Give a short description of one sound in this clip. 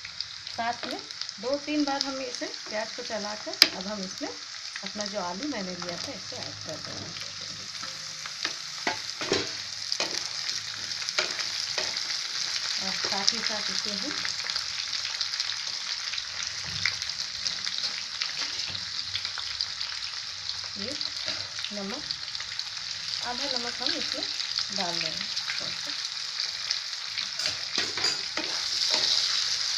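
Food sizzles steadily in hot oil in a pan.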